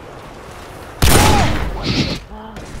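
A rifle fires a loud shot.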